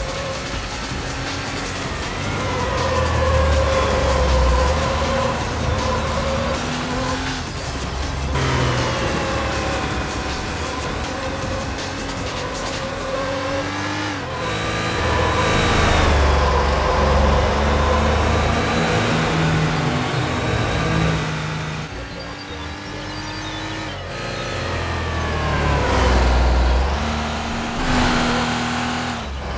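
A sports car engine revs hard, rising and dropping in pitch as it shifts gears.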